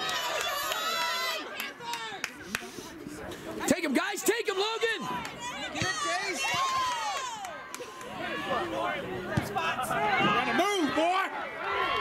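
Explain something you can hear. Young players and spectators shout and call out across an open outdoor field.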